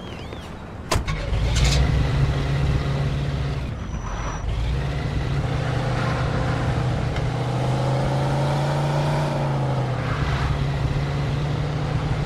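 A car engine rumbles and revs as the car drives off.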